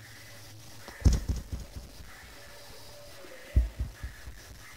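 A small wooden box clatters and knocks.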